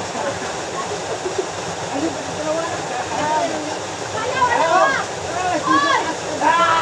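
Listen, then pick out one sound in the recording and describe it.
Water rushes in a shallow stream outdoors.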